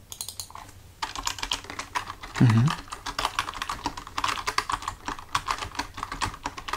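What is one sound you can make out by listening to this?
Fingers type on a computer keyboard.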